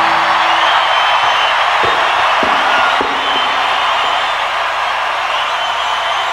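A huge stadium crowd cheers and roars loudly in a vast open space.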